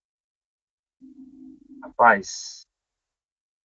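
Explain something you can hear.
A second man speaks over an online call.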